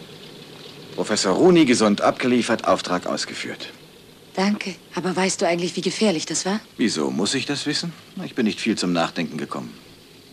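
A man speaks tensely up close.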